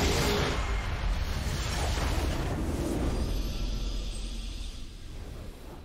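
A building in a game crumbles with a heavy rumble.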